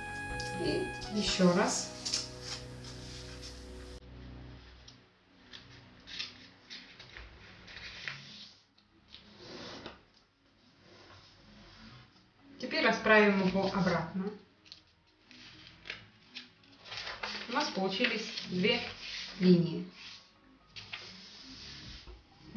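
Paper rustles and crinkles as it is folded and creased.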